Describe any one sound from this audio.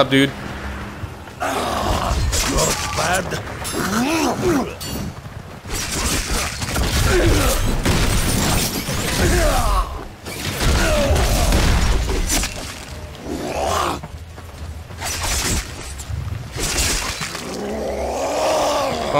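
Blows thud and crack in quick succession.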